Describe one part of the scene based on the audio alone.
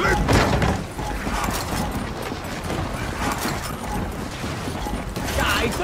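Heavy armored footsteps thud quickly while running.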